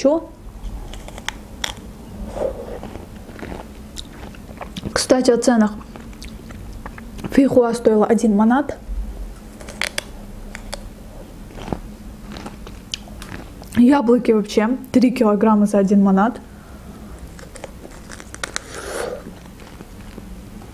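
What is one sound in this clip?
A young woman chews juicy fruit close to a microphone, with wet smacking sounds.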